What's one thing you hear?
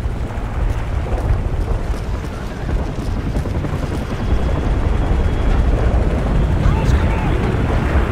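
Battle explosions rumble low and steadily in the distance.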